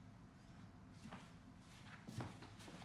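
Footsteps tread softly across a wooden floor.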